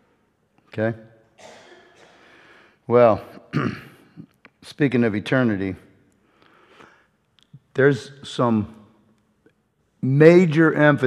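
A middle-aged man speaks with animation into a microphone, pausing often.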